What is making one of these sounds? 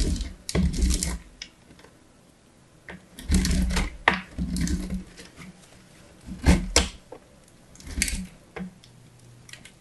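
Something rasps against a metal grater in short scraping bursts.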